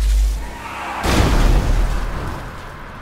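A car crashes into a wall with a loud crunch.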